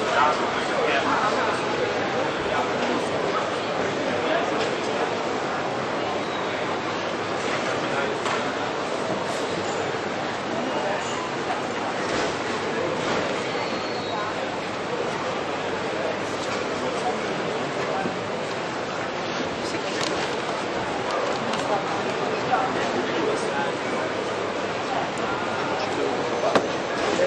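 A crowd murmurs and chatters in a busy indoor hall.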